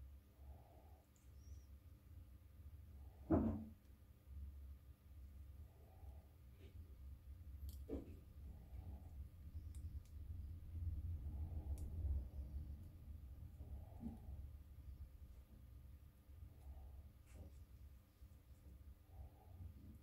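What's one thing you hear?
Small plastic and metal parts click and tap faintly as hands work on them.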